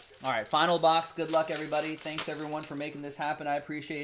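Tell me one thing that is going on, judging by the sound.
A foil card pack crinkles as it is torn open.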